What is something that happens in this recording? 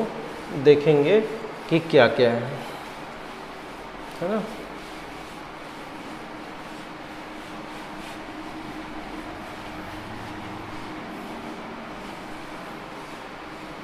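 A cloth rubs softly across a chalkboard.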